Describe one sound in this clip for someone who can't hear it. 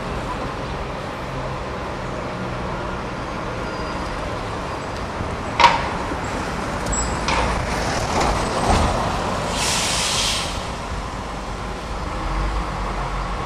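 A bus engine rumbles as the bus drives slowly.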